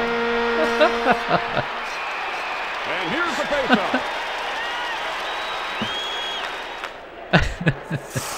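A crowd cheers steadily.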